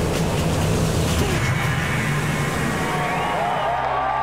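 Speedboat engines roar.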